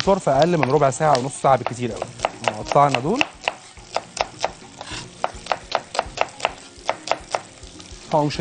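A knife chops quickly on a wooden board.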